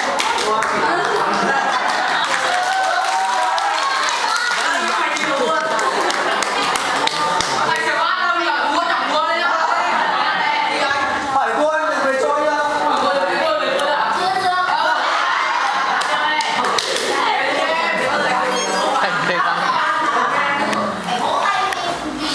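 Young people chatter and laugh all around in a room.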